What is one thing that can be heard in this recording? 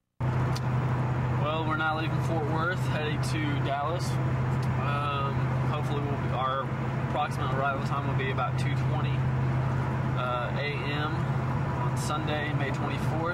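A young man speaks calmly close to the microphone.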